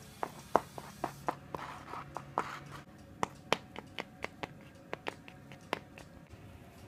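A small plastic toy horse taps and clatters on a hard floor in quick clopping steps.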